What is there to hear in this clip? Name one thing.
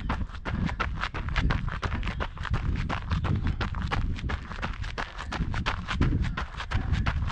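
Tyres crunch and rattle over a bumpy dirt trail.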